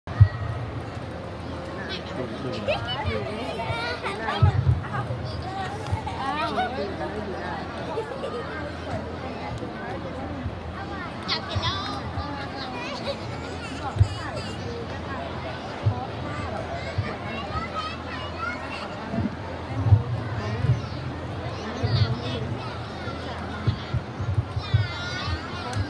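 Young girls chatter and laugh close by.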